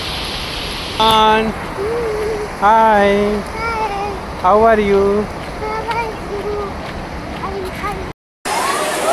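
A child speaks excitedly close by.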